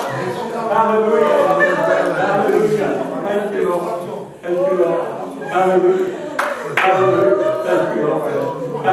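A man preaches loudly and with fervour into a microphone in an echoing room.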